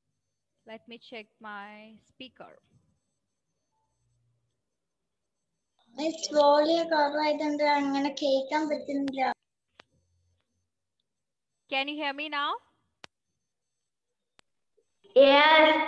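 A young girl talks through an online call, in short bursts.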